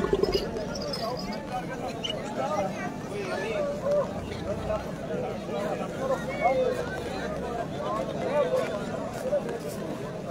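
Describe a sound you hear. A large crowd of men murmurs and talks outdoors.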